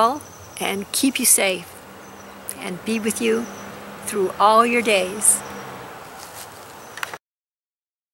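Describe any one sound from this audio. An elderly woman speaks warmly and calmly, close to a microphone.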